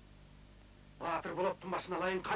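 A man speaks close by in a low voice.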